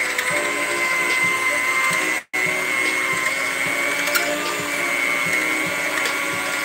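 An electric hand mixer whirs steadily as it whips in a bowl.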